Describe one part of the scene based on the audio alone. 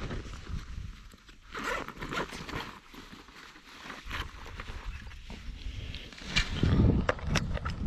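Equipment rustles and clatters as a man handles gear.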